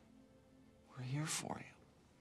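A man answers softly, close by.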